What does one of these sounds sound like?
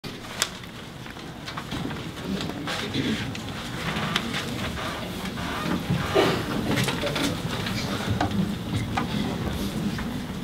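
A piano plays along with the choir.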